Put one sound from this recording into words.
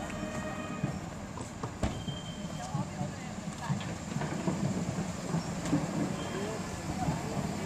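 A pickup truck engine idles as it rolls slowly past.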